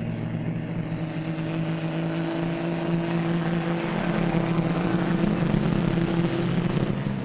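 Truck engines rumble steadily, drawing closer.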